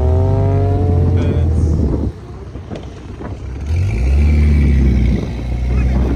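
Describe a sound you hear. Car engines rumble and rev loudly nearby.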